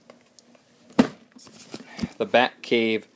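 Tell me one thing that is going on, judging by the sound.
A hand taps a cardboard box.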